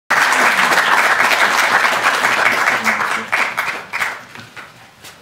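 An audience applauds in a large hall, then the applause dies away.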